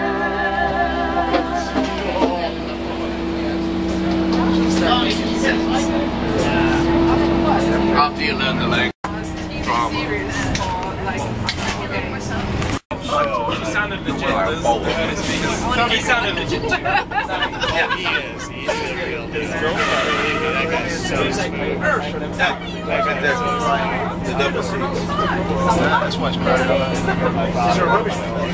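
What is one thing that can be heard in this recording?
Several men and women talk and chatter loudly close by.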